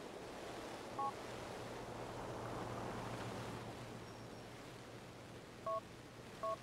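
A mobile phone beeps with a short alert.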